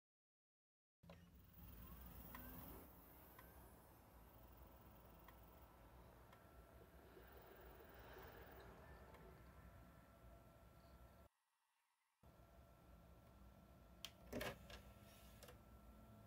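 A game console's fan hums steadily.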